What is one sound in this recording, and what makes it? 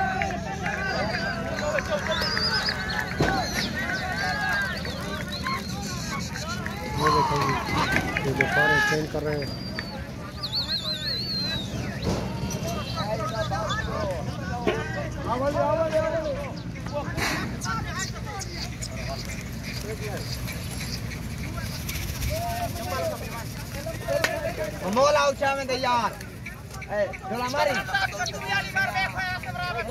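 A crowd of men chatters in the background.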